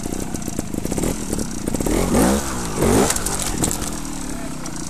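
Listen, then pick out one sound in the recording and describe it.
A motorcycle engine revs up sharply and drops back.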